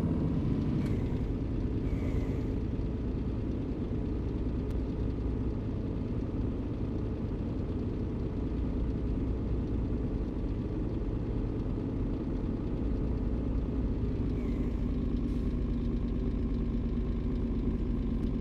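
A truck engine rumbles steadily while driving.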